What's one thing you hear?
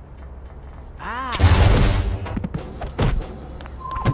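A heavy blow lands with a sharp impact.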